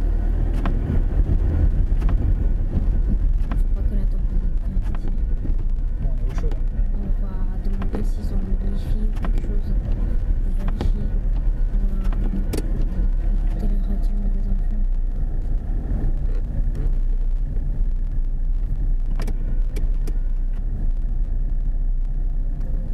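Tyres rumble over snow on the road.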